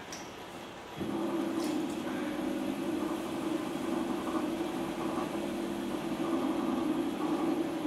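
A potter's wheel hums steadily as it spins.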